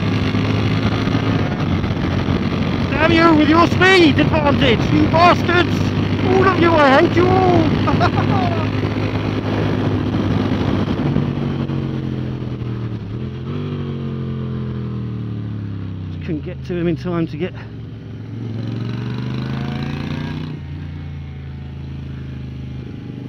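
A motorcycle engine drones steadily up close, its pitch rising and falling with the throttle.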